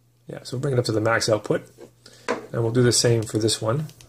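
A small metal flashlight is set down on a hard tabletop with a light knock.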